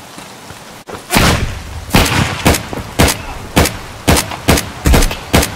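A rifle fires a run of shots.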